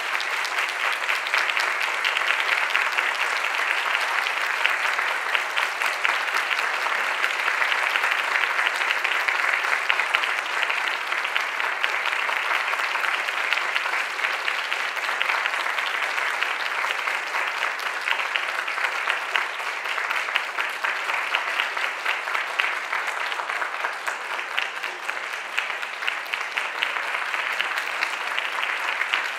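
An audience claps steadily in a large hall.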